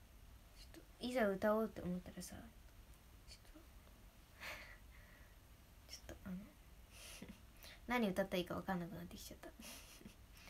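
A young woman speaks softly in short bursts, close to a microphone.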